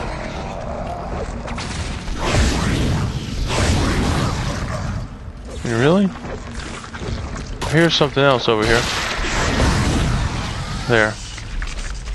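A weapon fires with sharp bursts a few times.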